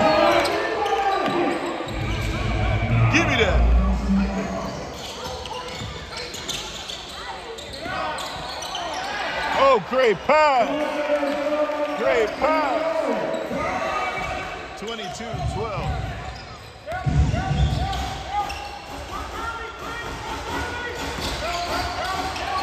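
A crowd murmurs and calls out in a large echoing gym.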